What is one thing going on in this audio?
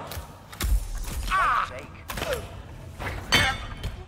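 A thrown wrench strikes a man with a hard thud.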